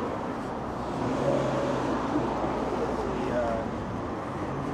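People chat faintly while passing by.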